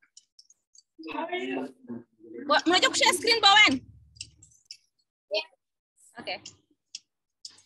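Young boys laugh and talk excitedly close by, heard through an online call.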